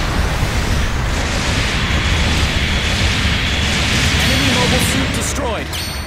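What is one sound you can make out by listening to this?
Explosions rumble low and dense.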